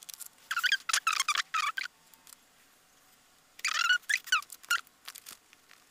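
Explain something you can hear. Stiff paper pieces rustle softly as they are handled.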